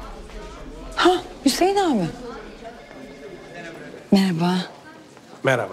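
A woman speaks brightly nearby.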